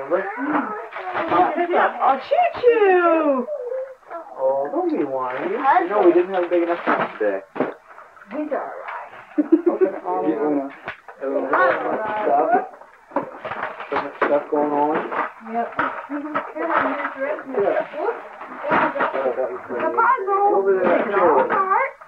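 A small child babbles.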